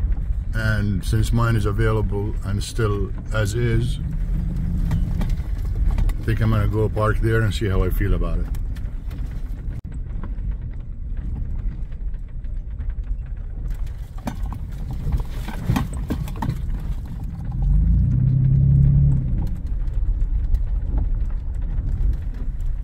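Tyres crunch and rumble over a dirt track.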